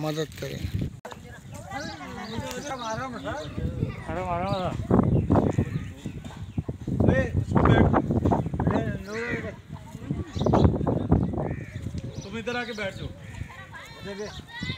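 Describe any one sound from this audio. Children shout and call out while playing outdoors.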